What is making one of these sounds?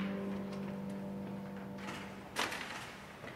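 A small chamber ensemble plays a final held chord that fades away.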